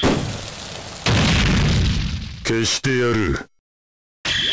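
A fiery blast bursts with a roar.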